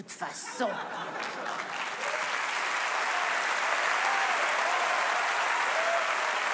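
An audience applauds and cheers loudly.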